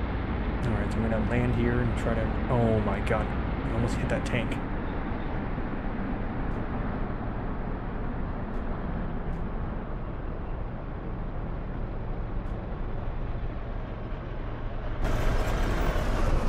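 A jet engine hums steadily as an aircraft rolls along a runway.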